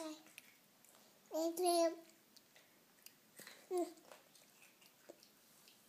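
A baby chews food, smacking its lips.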